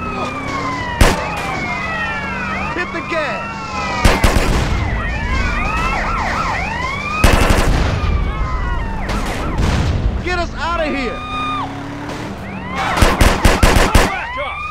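Vehicles crash together with loud bangs.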